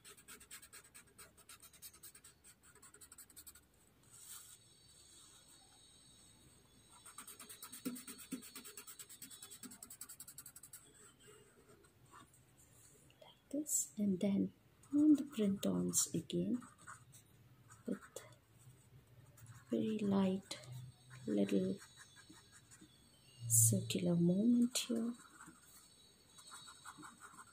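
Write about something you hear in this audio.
A pen scratches rapidly across paper.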